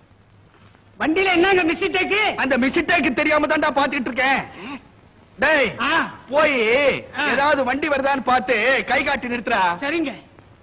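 A man sings with a wavering voice.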